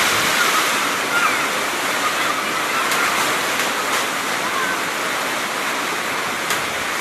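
Strong wind roars and lashes the trees.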